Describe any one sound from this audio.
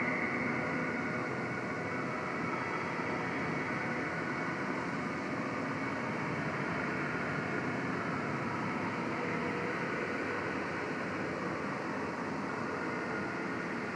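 Electronic music plays steadily through loudspeakers.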